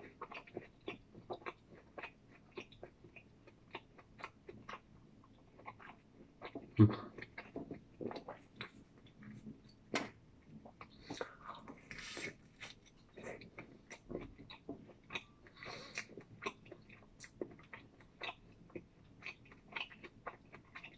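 A man chews food with wet smacking sounds, close to the microphone.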